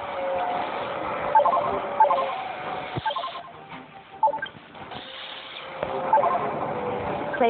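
Short electronic game beeps and chimes sound now and then.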